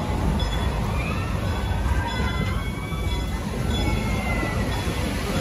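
Metal wheels squeal faintly on a curved rail.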